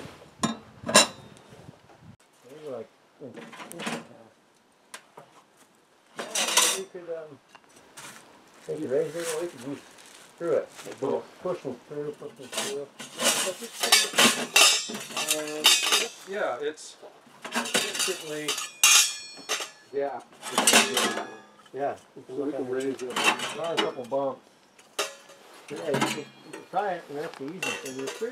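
Metal parts clank and rattle as a small stove is assembled.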